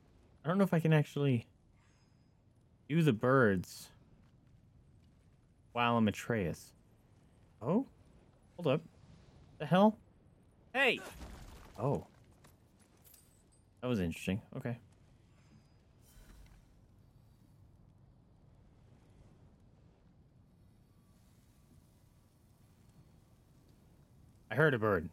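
A young man talks casually and in bursts, close to a microphone.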